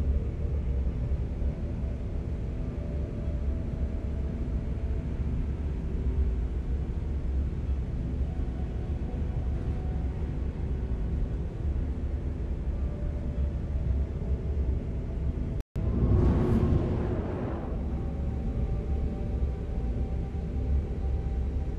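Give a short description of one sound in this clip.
A spacecraft engine hums with a steady low rumble.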